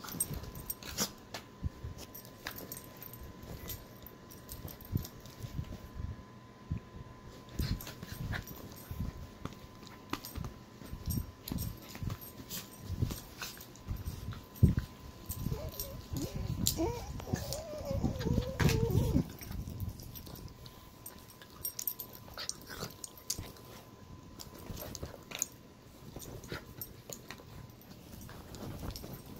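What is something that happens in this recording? Bedding rustles and bumps close by.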